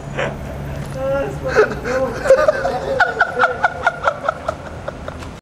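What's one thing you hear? A young man laughs and shouts nearby outdoors.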